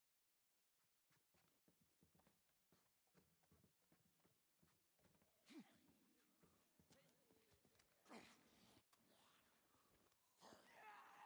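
Footsteps thud on wooden boards and rocky ground.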